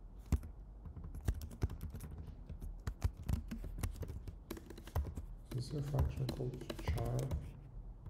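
Keys clatter on a keyboard in quick bursts of typing.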